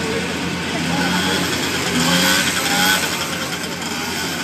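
A motorbike passes close by.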